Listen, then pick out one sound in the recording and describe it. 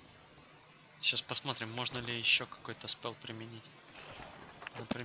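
Book pages rustle and click as a spellbook opens.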